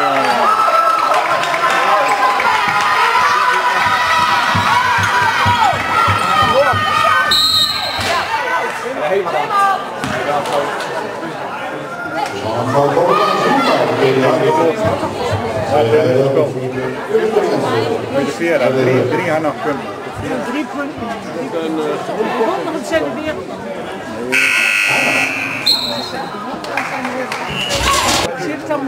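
A crowd of spectators talks and cheers in a large echoing sports hall.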